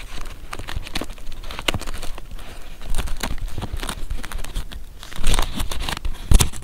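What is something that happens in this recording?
Stiff paper pages rustle and flutter as fingers flip through a thick bundle, close up.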